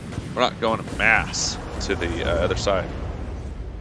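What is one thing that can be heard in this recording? A heavy gun fires in short bursts.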